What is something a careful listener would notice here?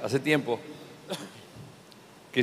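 A middle-aged man coughs.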